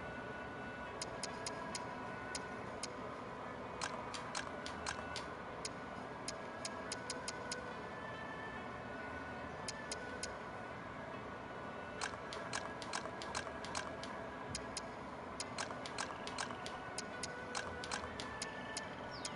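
Short menu blips tick as a cursor moves between items.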